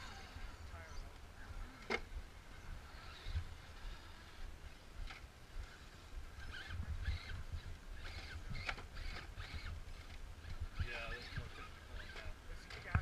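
Plastic tyres scrape and clatter on rock.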